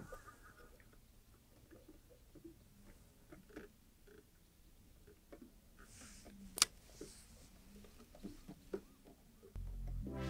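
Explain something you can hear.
A fishing reel ticks softly as its handle is turned.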